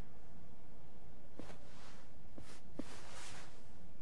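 A card is picked up off the floor with a soft click.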